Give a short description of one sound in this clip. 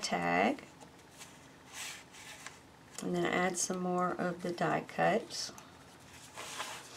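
Stiff paper rustles and slides softly under hands.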